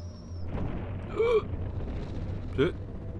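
A young man speaks briefly and close through a microphone.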